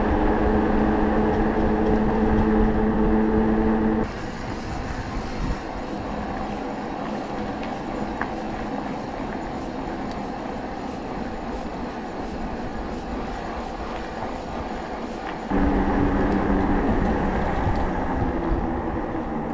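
Bicycle tyres roll steadily over asphalt.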